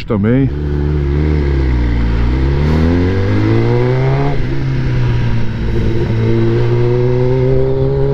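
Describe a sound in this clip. A motorcycle engine revs hard and shifts gears as the bike accelerates.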